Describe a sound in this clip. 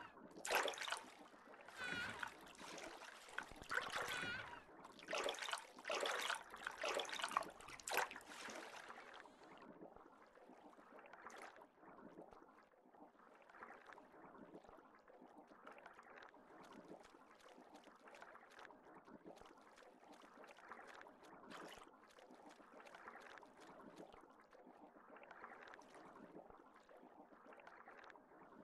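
A muffled underwater rumble goes on steadily.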